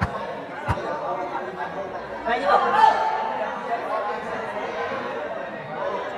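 A crowd of young people chatters and shouts in a large echoing hall.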